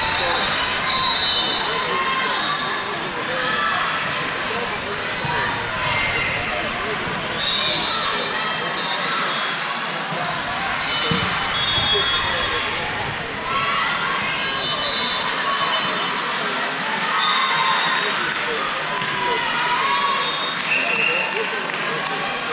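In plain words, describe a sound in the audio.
Shoes squeak sharply on a wooden court.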